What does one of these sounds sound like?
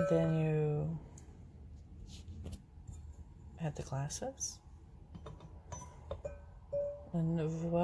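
A wine glass clinks softly as it is set into a holder.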